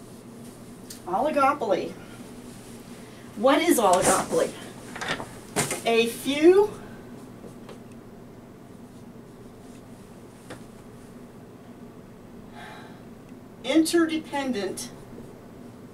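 An older woman speaks calmly nearby.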